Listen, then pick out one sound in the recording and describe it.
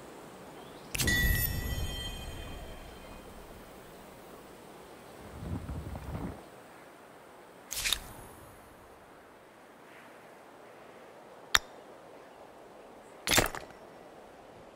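A game plays short interface chimes and clicks.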